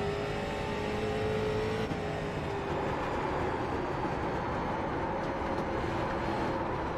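A race car engine roars loudly and steadily at high speed.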